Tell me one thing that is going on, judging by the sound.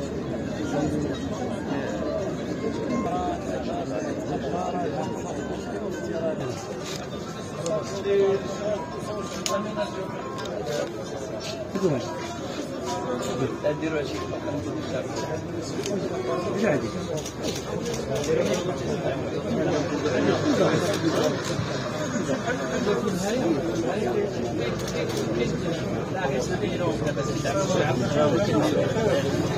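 A crowd of men chatters all around outdoors.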